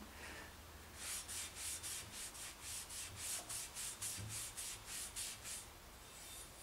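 A cloth rubs quickly back and forth on a metal frame.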